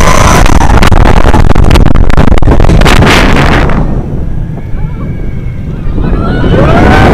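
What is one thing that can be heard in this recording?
Wind roars loudly past the microphone.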